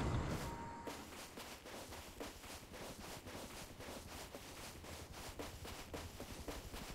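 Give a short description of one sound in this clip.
Footsteps crunch steadily over dry grass.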